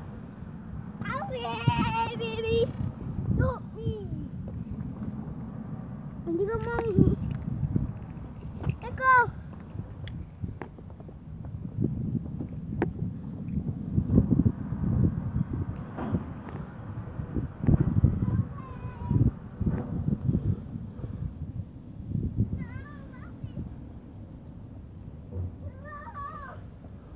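A young child calls out and squeals excitedly nearby.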